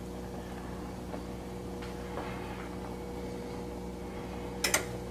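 Water bubbles softly in a pot.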